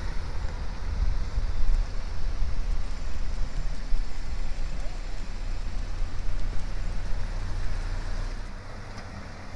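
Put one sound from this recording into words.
A car engine rumbles close by.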